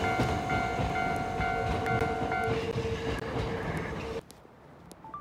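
A train rumbles past on the tracks close by.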